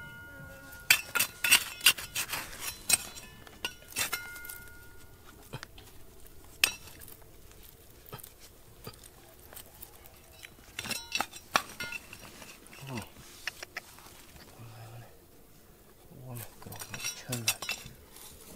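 A small trowel scrapes and digs into dry gravelly soil.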